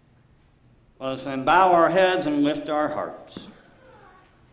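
A man speaks loudly in a large echoing room.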